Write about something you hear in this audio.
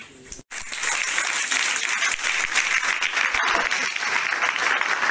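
An audience applauds loudly in a room.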